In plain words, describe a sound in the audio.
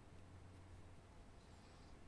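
Metal balls clink and roll together in a hand.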